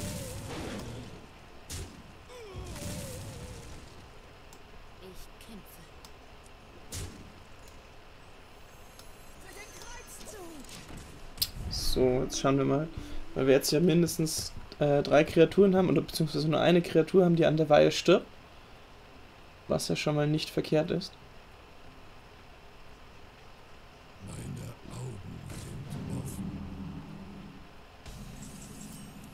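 Card game sound effects whoosh, clink and thud as cards are played.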